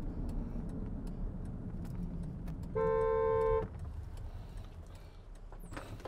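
A car engine and road noise rumble steadily from inside a moving car.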